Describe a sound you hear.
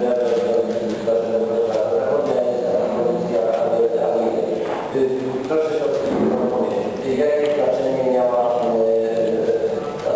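A man speaks steadily through a microphone in a large, echoing hall.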